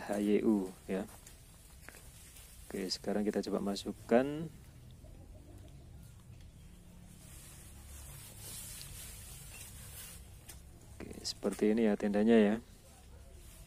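A man speaks briefly in short bursts close by.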